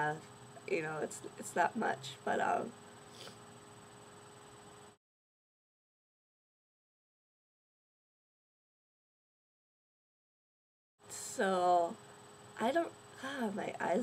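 A young woman talks casually and close up, pausing now and then.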